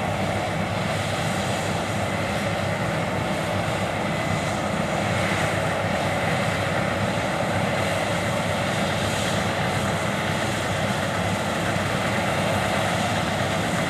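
A combine harvester's header clatters and rustles through standing grain.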